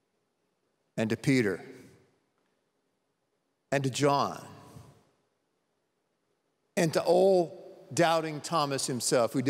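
A middle-aged man speaks with animation into a microphone, in a large echoing hall.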